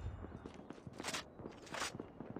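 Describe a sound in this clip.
A rifle magazine clicks as the rifle is reloaded.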